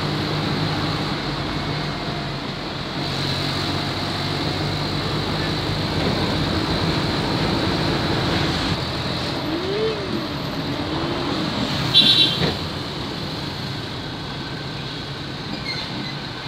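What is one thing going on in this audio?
Small motorcycles hum along a paved road ahead.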